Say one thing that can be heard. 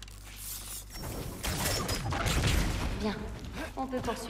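A magical energy blast whooshes and crackles.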